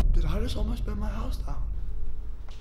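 A young man exclaims in shock, close by.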